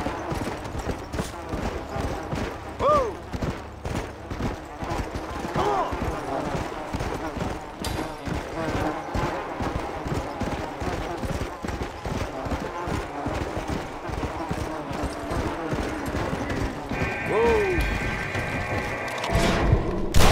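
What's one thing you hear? A horse gallops, its hooves thudding rapidly on snow.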